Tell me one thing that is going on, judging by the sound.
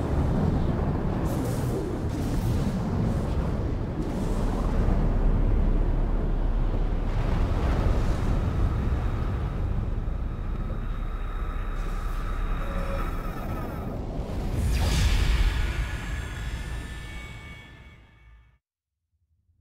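A storm rumbles deeply and steadily overhead.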